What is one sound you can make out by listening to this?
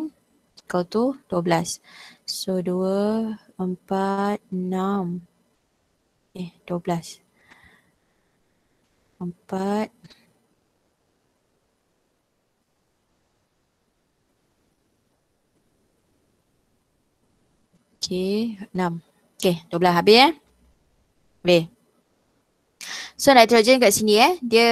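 A woman speaks calmly through a headset microphone, explaining in pauses.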